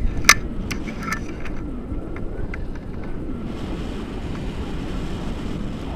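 Wind roars and buffets against a microphone outdoors.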